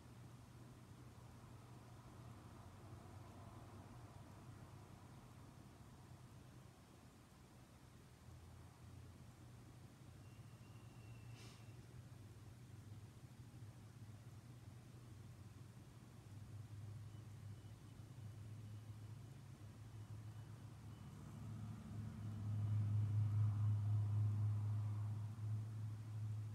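A man speaks quietly and calmly close by.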